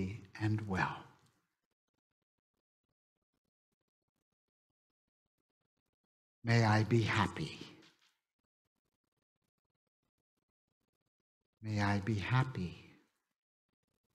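An older man speaks slowly through a headset microphone, in short phrases with long pauses.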